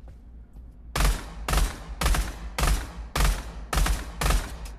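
Pistol shots ring out in quick succession, echoing in a hard-walled room.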